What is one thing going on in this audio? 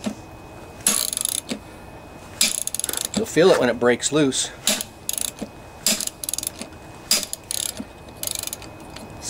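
A hammer strikes a metal bar against a flywheel in sharp, ringing blows.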